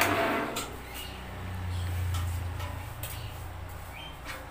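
A machine motor hums steadily.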